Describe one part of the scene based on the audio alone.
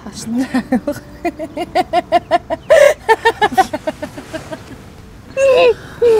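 Two women laugh together.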